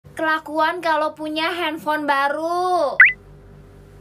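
A young woman speaks with animation, close up.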